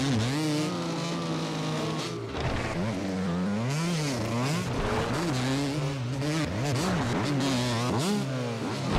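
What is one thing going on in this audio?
A motorcycle engine revs up and down, rising and falling in pitch.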